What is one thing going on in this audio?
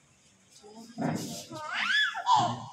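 A small child cries loudly.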